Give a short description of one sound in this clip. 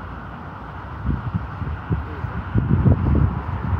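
Wind gusts buffet outdoors.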